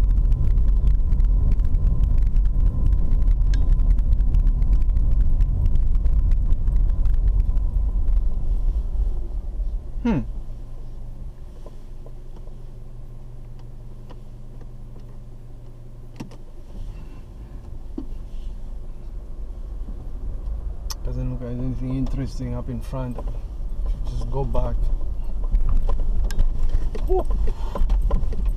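A car engine rumbles steadily while driving, then idles quietly for a while before pulling away again.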